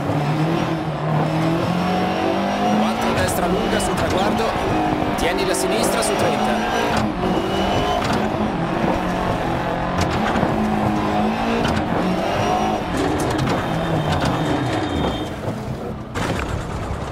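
Gravel and stones rattle against the underside of a car.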